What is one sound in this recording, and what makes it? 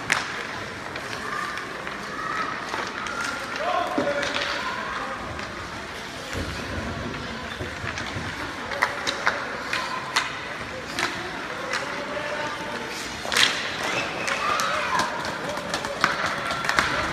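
Young children shout and call out across the rink.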